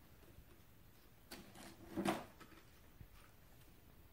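A cardboard lid is lifted off a box with a scrape.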